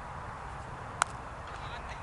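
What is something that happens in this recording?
A cricket bat hits a ball with a sharp crack.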